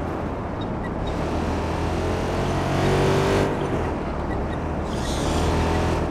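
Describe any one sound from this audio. Tyres screech as a car skids around a corner.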